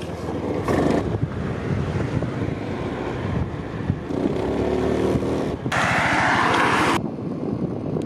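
A motorbike engine hums while riding along a road.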